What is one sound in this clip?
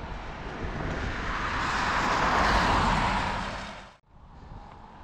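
A car drives past on a nearby road.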